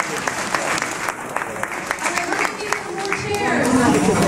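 An audience claps in an echoing hall.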